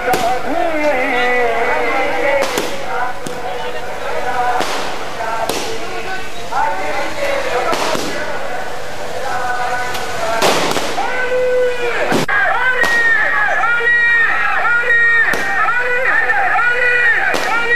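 Firecrackers explode with loud sharp bangs outdoors.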